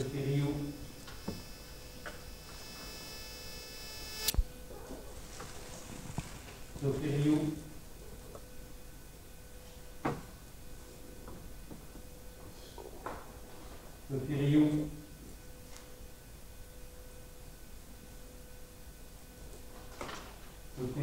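Paper rustles as sheets are handled.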